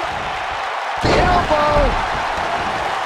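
A heavy body slams down onto a wrestling ring mat with a loud thud.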